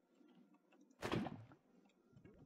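A bucket scoops up bubbling lava with a short gurgle.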